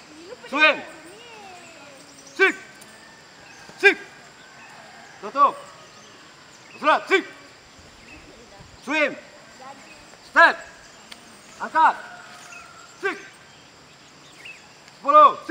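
A group of young martial arts trainees shout short calls in unison with each move.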